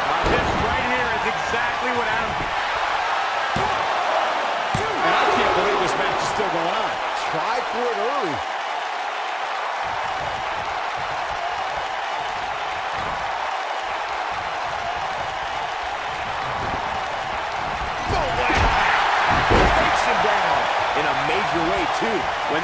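Bodies thud onto the mat.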